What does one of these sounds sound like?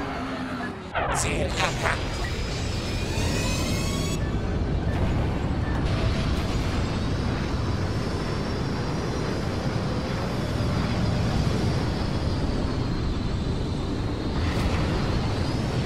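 Spaceship engines roar steadily.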